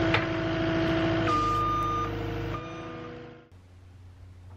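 A tracked loader's engine hums.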